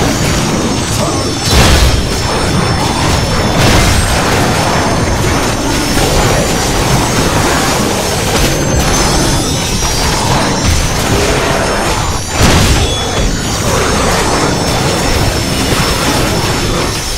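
Metal blades clash and slash in a fight.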